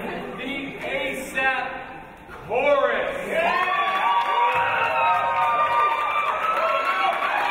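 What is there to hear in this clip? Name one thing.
A man speaks with animation into a microphone in an echoing hall.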